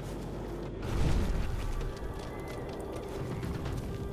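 A flaming torch crackles.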